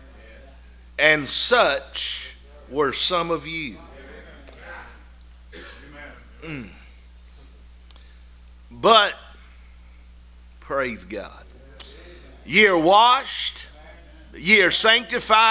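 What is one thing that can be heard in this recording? An older man speaks slowly and earnestly into a microphone, pausing between phrases.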